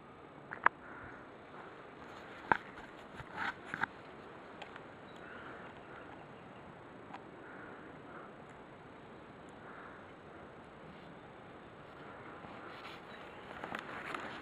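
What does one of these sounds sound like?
Fabric rustles and crumples as it is handled close by.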